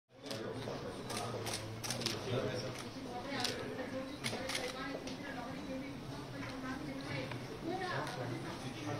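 Several men talk and murmur nearby.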